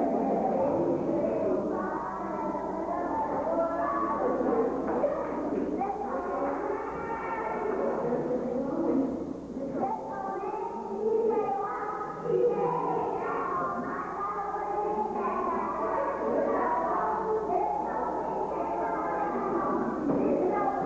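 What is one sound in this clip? A group of young children sing together in unison.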